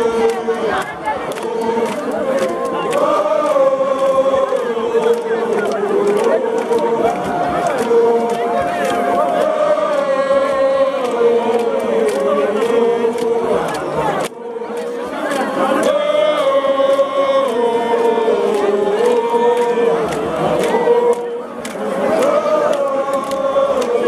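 A large crowd of men and women sings and chants loudly outdoors.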